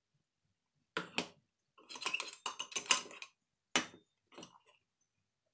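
A steel jar taps against a metal plate.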